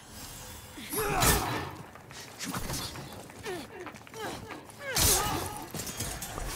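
Metal blades clash and strike in a fight.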